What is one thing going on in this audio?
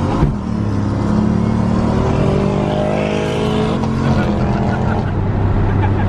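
A car engine revs up as it accelerates.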